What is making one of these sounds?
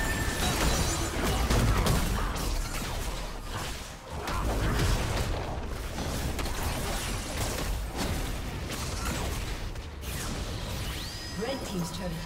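Game spell effects and weapon hits crash and burst in a busy fight.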